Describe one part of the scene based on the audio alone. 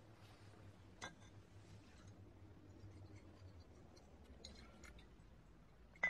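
A glass bottle clinks.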